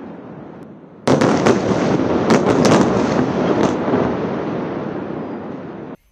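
A second explosion roars and rumbles, echoing over the city.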